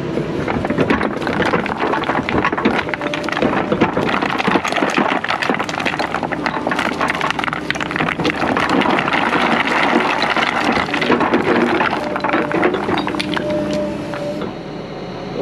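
An excavator bucket clanks and rattles.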